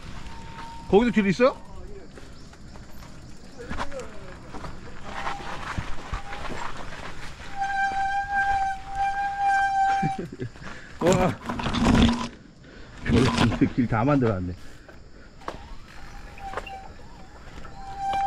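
A bicycle rattles over bumps on the trail.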